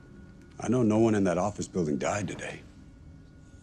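A young man speaks tensely and urgently, close by.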